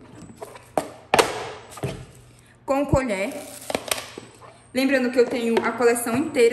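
Plastic containers clack against each other.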